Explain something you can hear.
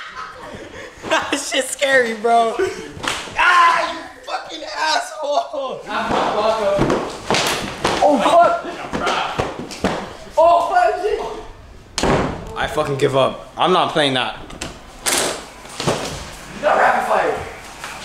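Young men talk and shout excitedly close by in a room.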